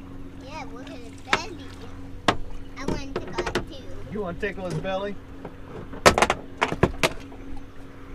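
A fish thrashes and slaps against the boat's side.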